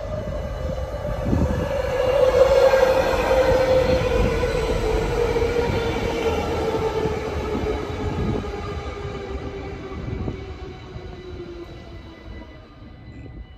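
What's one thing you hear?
A train rushes past close by, its motor whining and slowly dropping in pitch as it fades into the distance.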